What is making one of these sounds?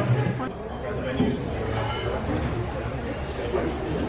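Diners chatter in a busy room.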